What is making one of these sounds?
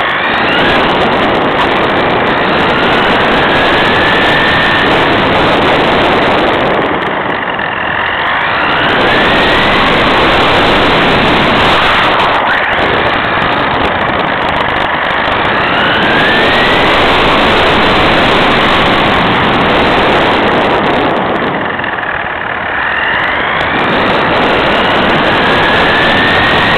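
A small electric motor whines loudly, its pitch rising and falling as it speeds up and slows down.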